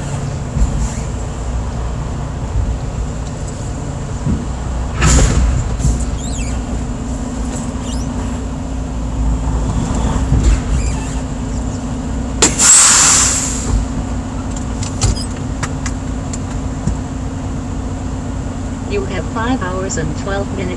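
A truck engine idles with a steady low rumble inside the cab.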